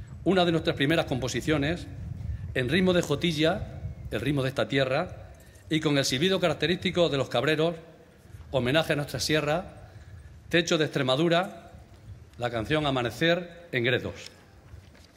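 A man speaks into a microphone over loudspeakers in a large open-air venue.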